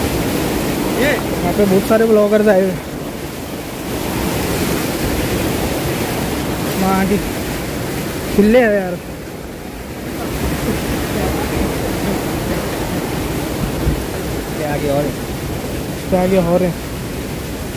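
Young people call out and talk loudly outdoors.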